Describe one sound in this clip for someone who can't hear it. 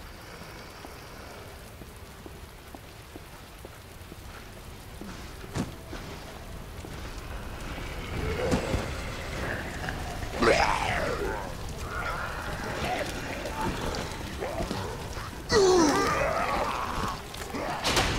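High heels click on wet pavement at a steady walking pace.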